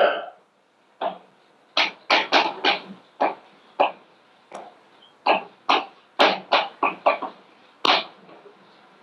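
Chalk taps and scrapes sharply on a blackboard.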